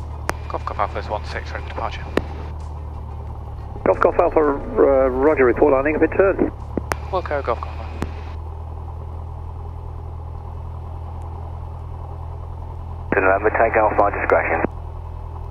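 A young man speaks calmly through a headset microphone, heard over a radio.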